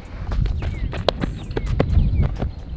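Cleats crunch on loose dirt as a person runs.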